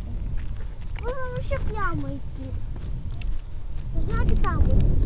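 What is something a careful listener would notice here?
A young child speaks in a high voice close by.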